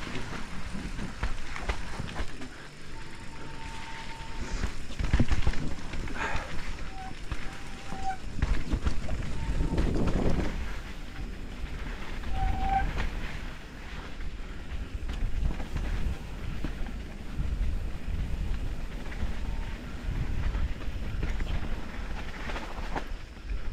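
Wind rumbles against the recorder outdoors.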